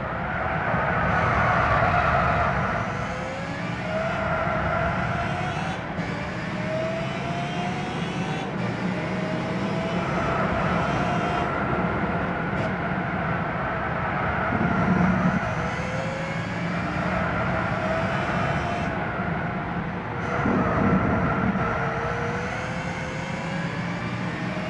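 A racing car engine roars steadily, rising in pitch as it speeds up through the gears.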